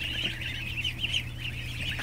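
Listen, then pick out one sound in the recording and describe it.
Ducklings peep in a constant high chatter.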